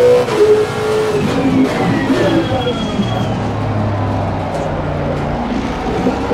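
A racing car engine drops in pitch as the car brakes hard.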